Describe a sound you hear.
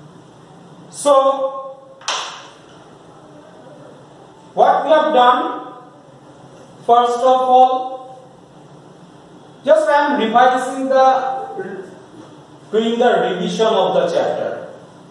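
A man speaks calmly and clearly, explaining in short phrases, close by.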